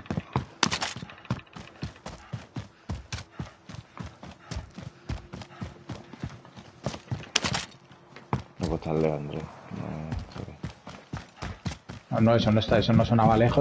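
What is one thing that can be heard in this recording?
Quick footsteps thud steadily on the ground.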